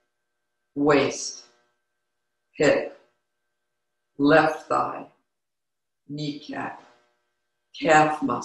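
An older woman reads aloud calmly and slowly, in short phrases with pauses, close to a microphone.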